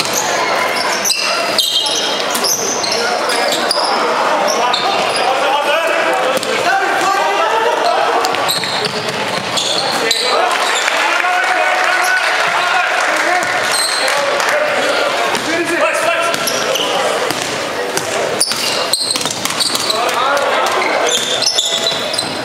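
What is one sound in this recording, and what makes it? A basketball is dribbled on a wooden court in a large echoing hall.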